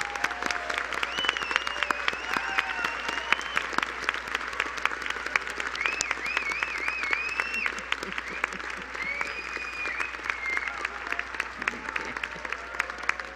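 People in a crowd cheer and whoop.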